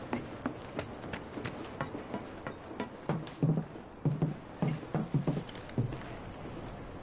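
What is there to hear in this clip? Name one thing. Footsteps clatter on metal stairs.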